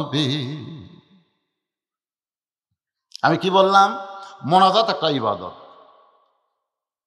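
An elderly man preaches in a chanting, sing-song voice through a microphone and loudspeakers.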